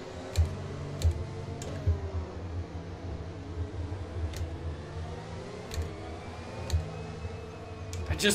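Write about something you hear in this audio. A racing car engine drones steadily at low speed.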